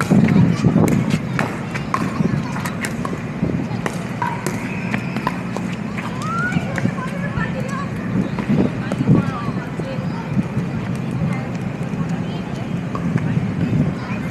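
Shoes scuff and patter on pavement.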